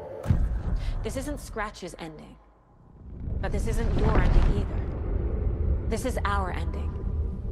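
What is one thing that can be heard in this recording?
A young woman speaks quietly and intensely, her voice echoing.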